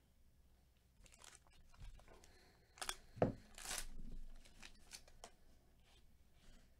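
A foil card pack wrapper crinkles and tears open.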